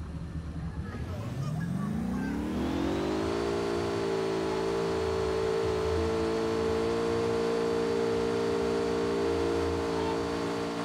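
A vehicle engine revs up and then drones steadily at high speed.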